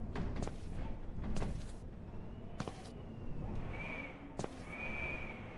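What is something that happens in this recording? Footsteps fall slowly on a stone floor in an echoing space.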